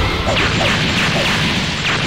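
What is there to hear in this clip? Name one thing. Lightning crackles and booms.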